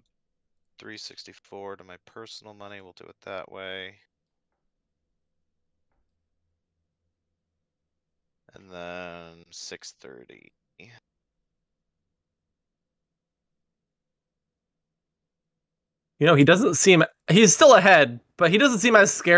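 A young man talks calmly into a close microphone, in short bursts with pauses.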